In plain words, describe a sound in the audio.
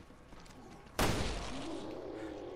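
A pistol fires a single loud shot that echoes briefly.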